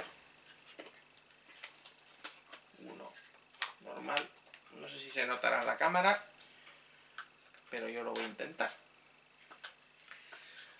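Small plastic pieces click and rattle in a man's hands.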